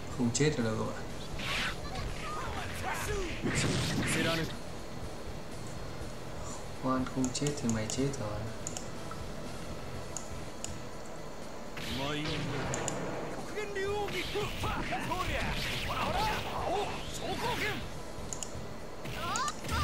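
Game fighting sounds of punches and blasts ring out.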